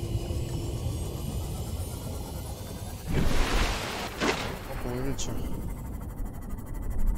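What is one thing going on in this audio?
A submarine's engine hums steadily underwater.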